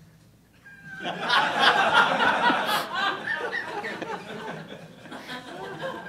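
An audience murmurs and laughs.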